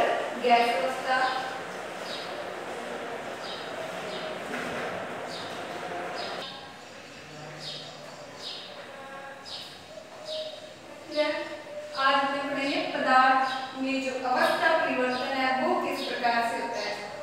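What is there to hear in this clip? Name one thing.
A young woman speaks clearly and steadily, as if explaining a lesson, close to the microphone.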